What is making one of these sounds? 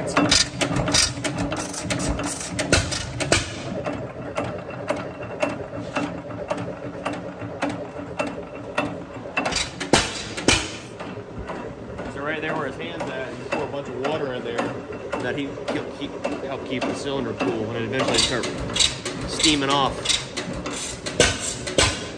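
An old engine chugs and pops steadily with a rhythmic beat.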